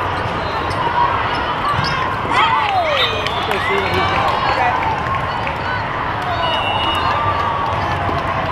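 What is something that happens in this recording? Young women shout and call to each other on court.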